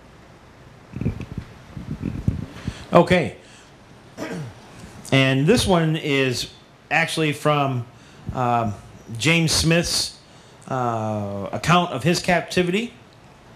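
A middle-aged man speaks calmly into a microphone over a loudspeaker.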